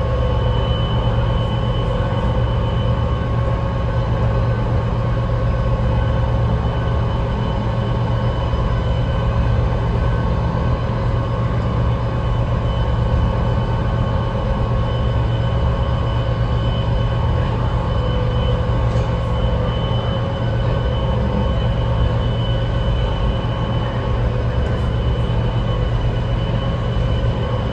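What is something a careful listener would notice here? A faint high whine rings steadily through the train car.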